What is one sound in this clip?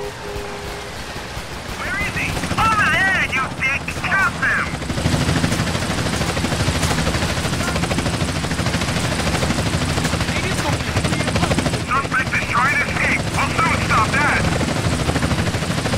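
Water splashes and churns as a swimmer strokes through it.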